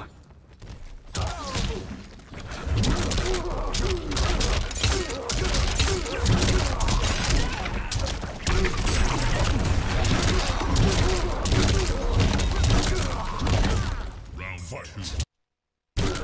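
Heavy punches and kicks land with hard thuds.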